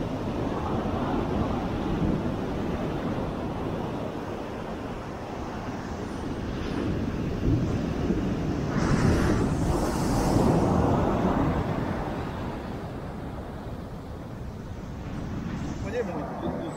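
Ocean waves break onto a sandy beach.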